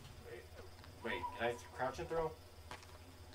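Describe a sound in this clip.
A young man speaks casually into a nearby microphone.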